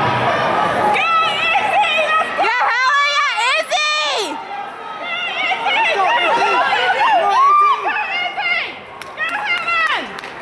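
Spectators cheer and shout loudly as runners race past.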